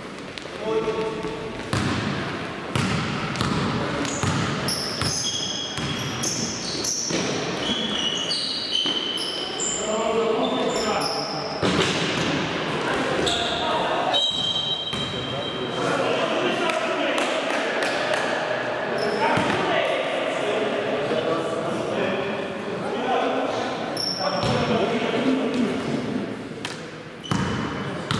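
Men call out to each other across the hall.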